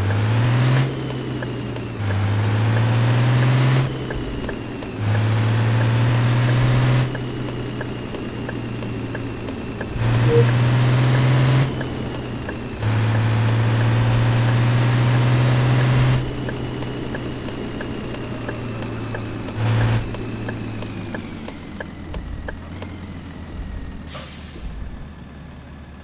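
A bus engine hums and rises in pitch as it speeds up, then winds down as it slows.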